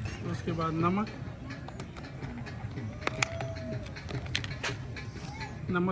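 Paper rustles as a man opens a small packet.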